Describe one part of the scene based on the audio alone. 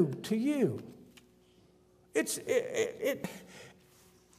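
An elderly man speaks with feeling through a microphone.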